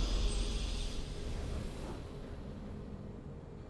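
A triumphant game victory sound rings out and slowly fades.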